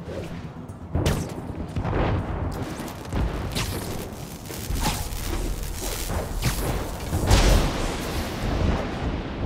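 Webs shoot out with sharp snapping thwips.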